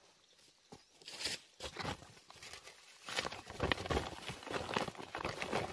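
Hands scrape and scoop loose dry soil.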